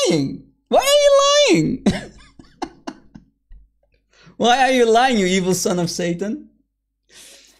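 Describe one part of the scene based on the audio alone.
A man speaks calmly and clearly through a microphone.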